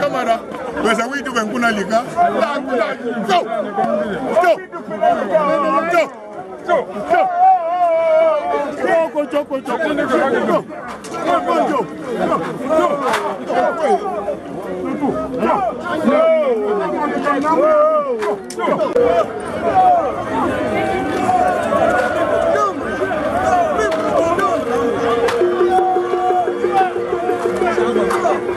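Men sing loudly together close by.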